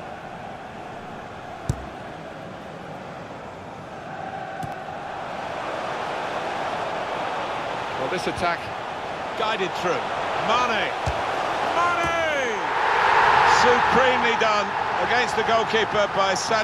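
A large stadium crowd murmurs and then swells into a loud cheer.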